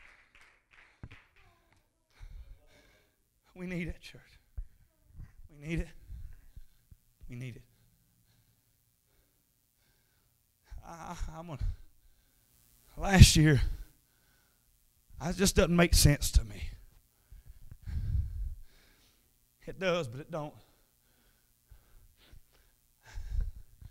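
A man speaks with animation into a microphone, heard through loudspeakers in an echoing room, with long pauses between phrases.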